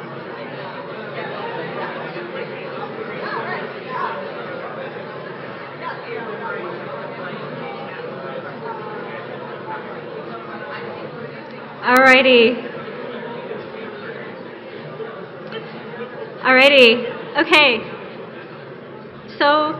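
A woman speaks calmly into a microphone in a large hall.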